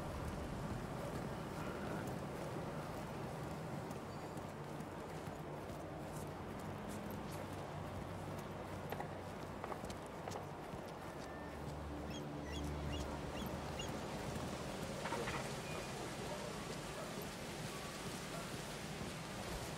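Footsteps walk steadily across hard ground.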